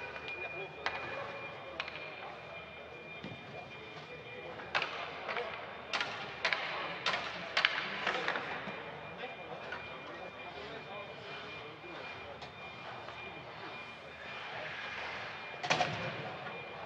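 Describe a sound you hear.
Hockey sticks tap and knock on the ice and puck.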